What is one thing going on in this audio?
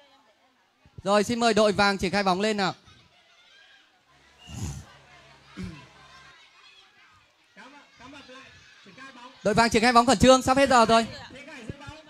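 Children shout and cheer across the water.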